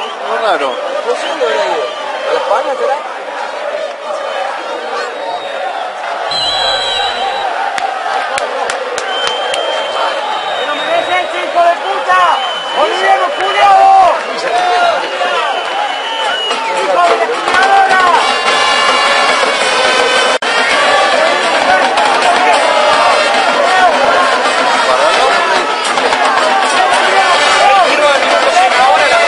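A crowd of spectators shouts and chants outdoors.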